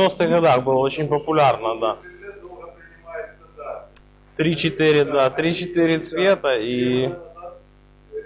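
A middle-aged man speaks with animation nearby.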